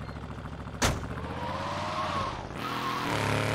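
A car engine starts and revs up.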